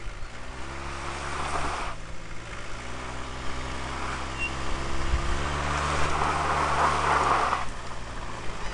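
A tyre spins and churns in loose sand.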